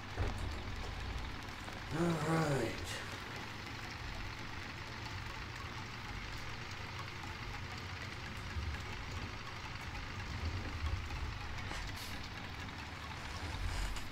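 A tractor engine rumbles steadily at low speed.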